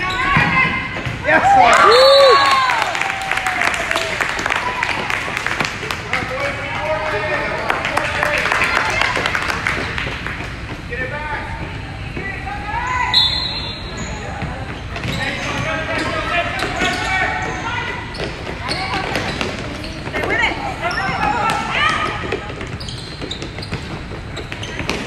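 Spectators cheer and shout loudly in an echoing indoor hall.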